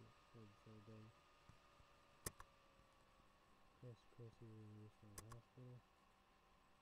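A young man speaks calmly and quietly, close to a webcam microphone.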